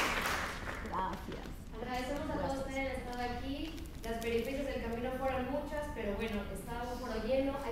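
A woman speaks through a microphone over loudspeakers in a large hall.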